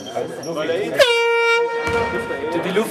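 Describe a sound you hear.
A referee blows a whistle once.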